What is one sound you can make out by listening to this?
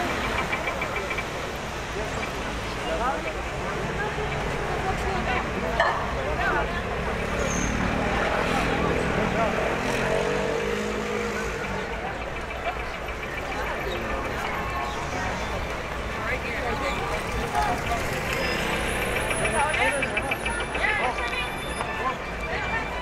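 A crowd of people chatter outdoors on a busy street.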